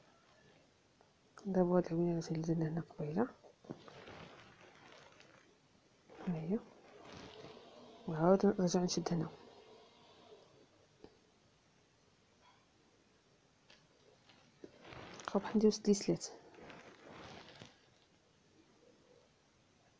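Thread rustles softly as it is pulled through fabric.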